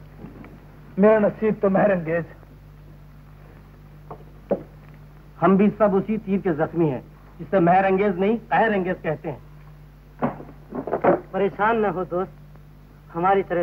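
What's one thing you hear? A young man speaks with emotion.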